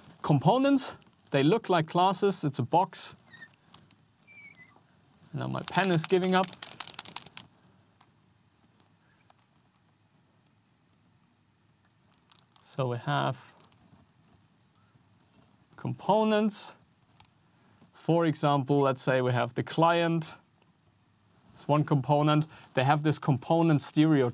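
A man speaks calmly and clearly into a close microphone, pausing between phrases.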